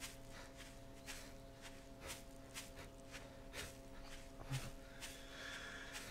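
Footsteps swish steadily through grass.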